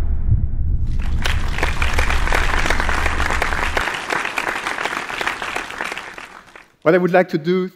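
An audience applauds in a large hall and the clapping fades away.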